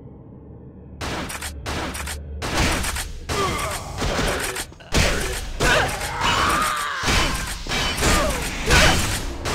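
Game fight effects clash and crackle.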